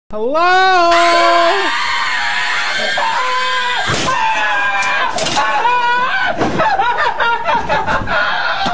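A young man screams wildly and loudly.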